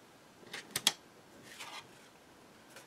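Stiff card rustles and taps against a table.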